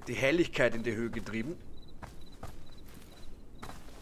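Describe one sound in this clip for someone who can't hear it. Small footsteps fall on soft forest ground.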